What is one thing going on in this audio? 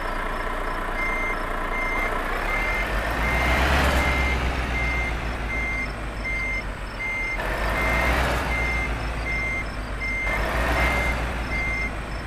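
A reversing alarm beeps steadily and repeatedly.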